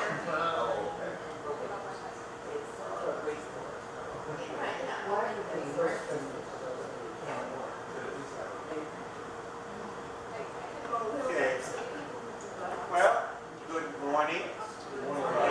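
An elderly man speaks calmly, heard from a distance in a reverberant room.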